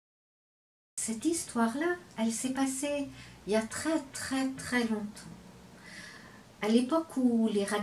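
An older woman speaks calmly and expressively, close to a microphone.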